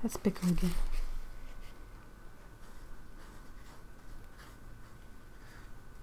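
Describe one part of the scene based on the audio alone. A paintbrush softly brushes across paper.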